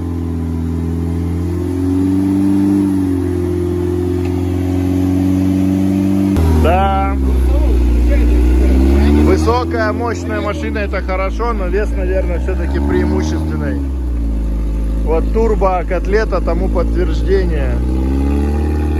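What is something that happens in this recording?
An off-road engine roars and revs hard.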